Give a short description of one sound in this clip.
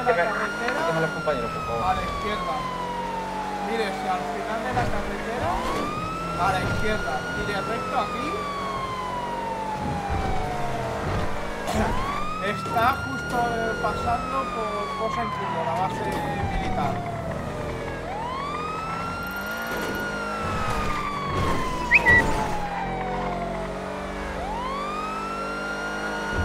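A siren wails in a slow, repeating rise and fall.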